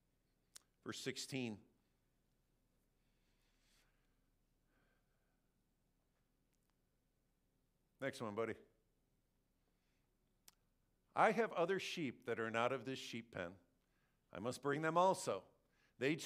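A man speaks in short phrases through a microphone.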